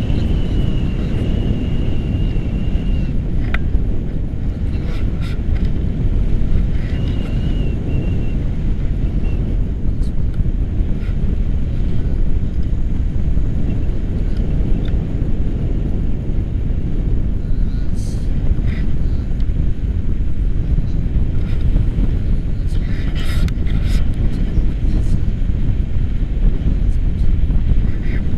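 Strong wind roars and buffets loudly, outdoors in the open air.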